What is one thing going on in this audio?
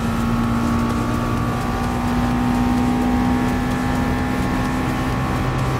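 A racing car engine roars at high revs.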